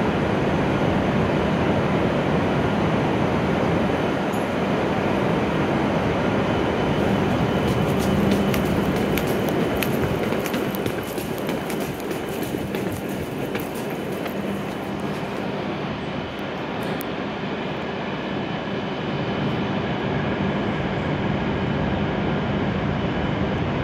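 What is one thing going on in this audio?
A parked train hums steadily.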